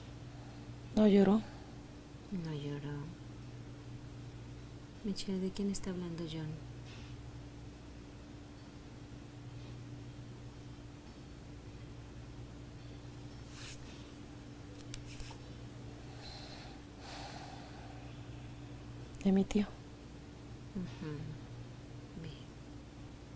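A middle-aged woman groans and sighs close by.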